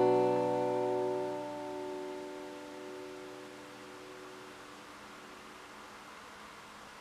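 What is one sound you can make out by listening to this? An acoustic guitar chord rings out and slowly fades.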